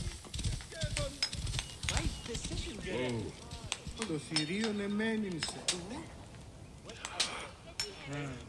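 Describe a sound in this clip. Horse hooves pound on dry ground at a gallop.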